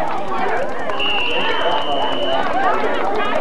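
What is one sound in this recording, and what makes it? A referee's whistle blows one long shrill blast.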